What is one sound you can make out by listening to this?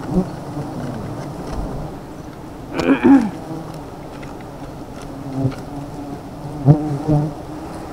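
Leaves and branches rustle and snap as someone pushes through the brush.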